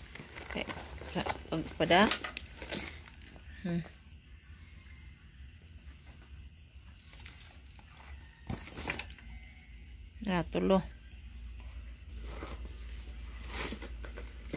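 Plastic wrapping crinkles and rustles as bags are handled.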